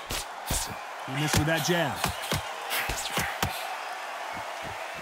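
Punches thud against a boxer's body and gloves.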